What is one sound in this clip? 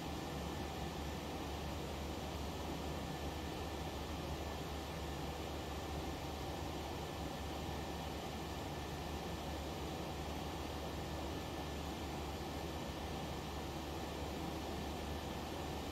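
Jet engines drone steadily, with a constant rushing hiss.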